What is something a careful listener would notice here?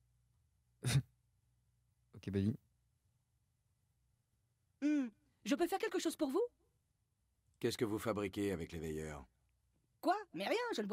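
A man speaks in a rasping, hesitant voice.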